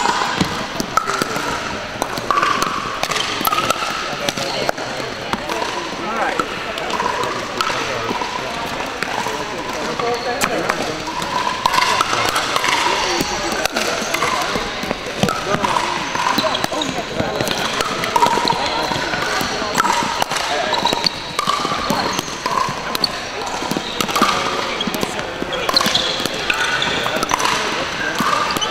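Paddles knock a plastic ball back and forth in an echoing hall.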